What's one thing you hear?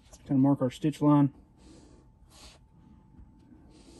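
A metal tool scrapes and presses along leather.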